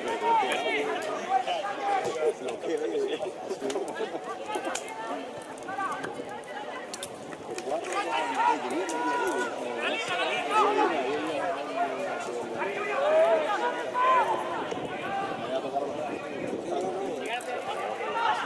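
A crowd of men and children chatter and call out nearby, outdoors.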